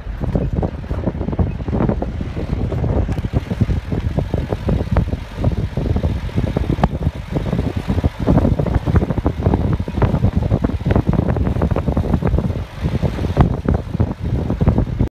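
Wind buffets past an open vehicle window.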